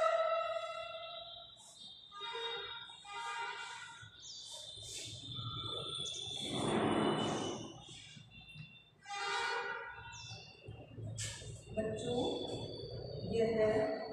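Chalk scrapes and taps on a board.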